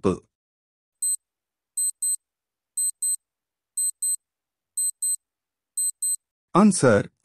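A countdown timer ticks in short, even beeps.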